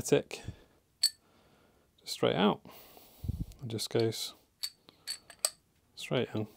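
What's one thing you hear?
Metal parts click together softly.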